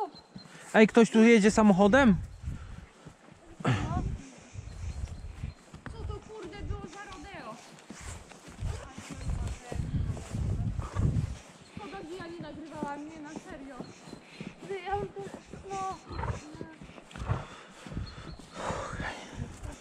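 A horse's hooves thud steadily on a dirt track.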